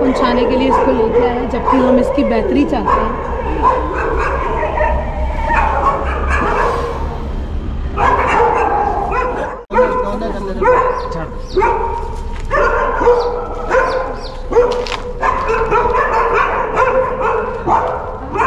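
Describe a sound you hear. A middle-aged woman talks nearby.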